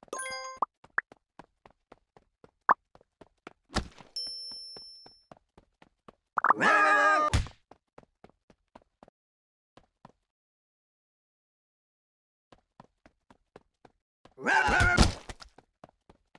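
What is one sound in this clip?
Short soft pops sound in quick succession.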